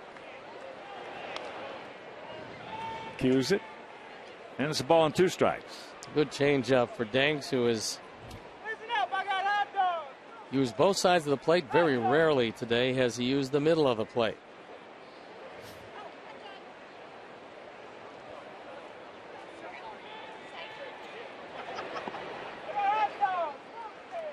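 A crowd murmurs steadily outdoors in a large stadium.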